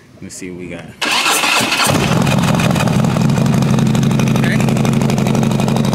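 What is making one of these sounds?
A motorcycle engine starts and idles with a steady low rumble.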